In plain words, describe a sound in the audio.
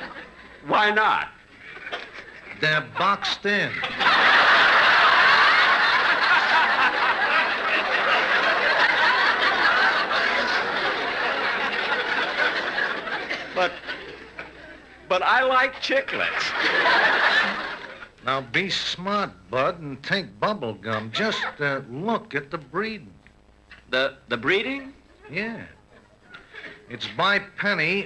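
A man speaks with animation over an old radio broadcast.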